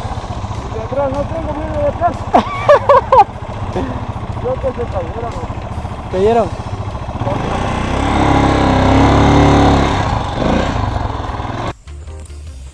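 A dirt bike engine rumbles as it rides along a dirt track.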